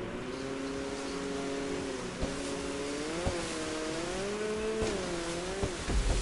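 Water splashes and sprays behind a jet ski.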